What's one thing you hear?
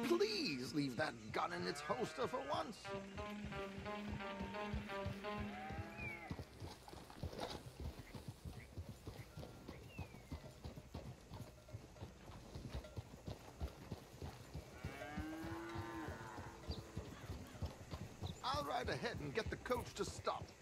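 Horses' hooves thud steadily on a dirt trail.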